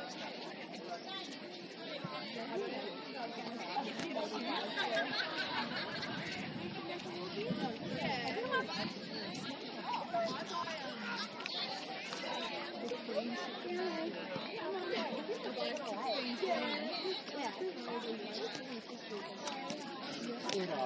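A crowd of people chatter and call out outdoors at a distance.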